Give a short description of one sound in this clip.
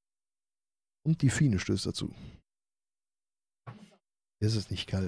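A young man talks into a close microphone in short bursts.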